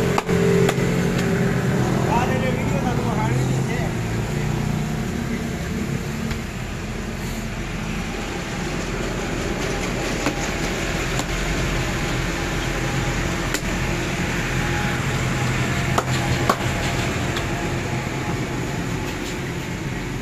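Soft dough slaps and pats between a person's hands.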